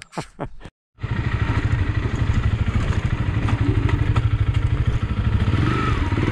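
A dirt bike engine chugs steadily as it rides along.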